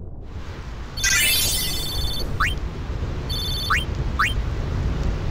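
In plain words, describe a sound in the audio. Electronic menu chimes blip quickly.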